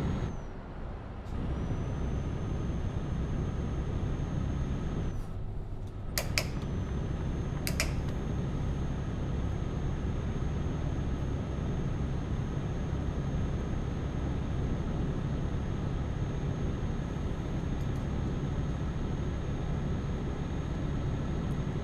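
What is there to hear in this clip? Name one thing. A truck engine hums with a steady low drone.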